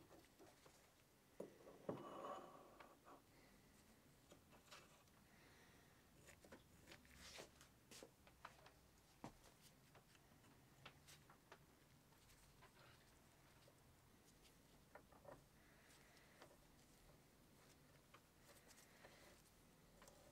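Small metal parts clink and click as they are handled.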